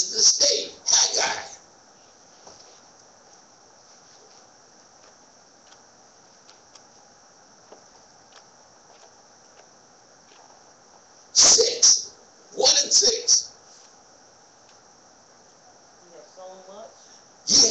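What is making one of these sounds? A man speaks into a microphone in short bursts with long pauses.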